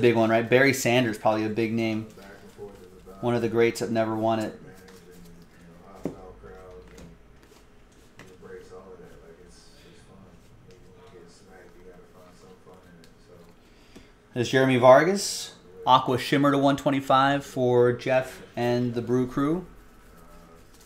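Trading cards shuffle and flick softly in hands.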